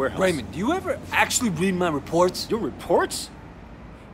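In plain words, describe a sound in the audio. A second man answers calmly, close by.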